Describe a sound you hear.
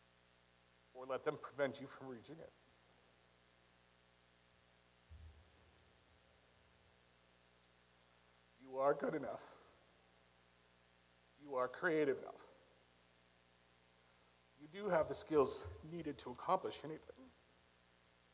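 A man speaks slowly through a microphone, with long pauses.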